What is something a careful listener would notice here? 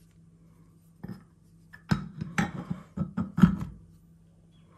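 Metal pieces click together sharply.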